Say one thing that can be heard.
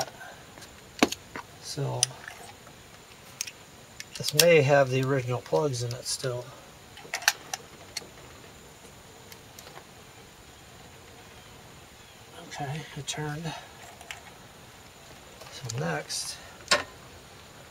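Metal parts click and clink as hands work on an engine.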